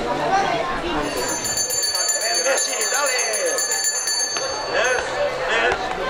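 A hand bell rings.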